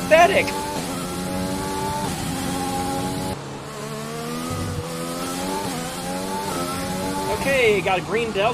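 A racing car engine whines high and rises and falls as it shifts gears.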